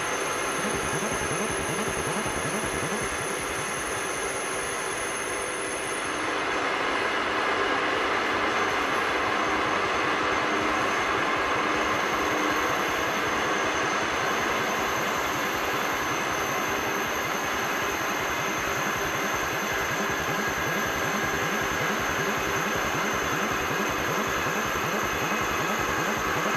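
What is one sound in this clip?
A small power tool grinds steadily and loudly.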